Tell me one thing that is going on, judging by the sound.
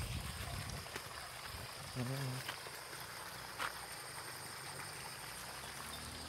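Water splashes steadily from a pipe into a pond.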